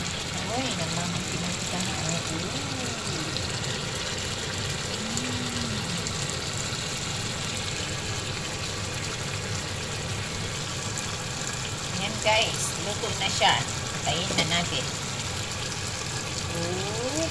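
Food sizzles and bubbles in a hot frying pan.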